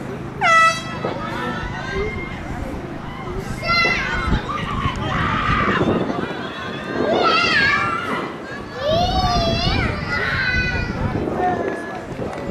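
Several young people shout and cheer loudly outdoors.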